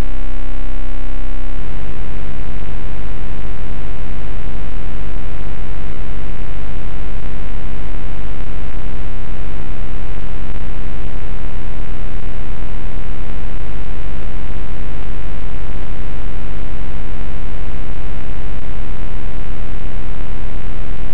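Electronic game music plays steadily with a bouncing chiptune beat.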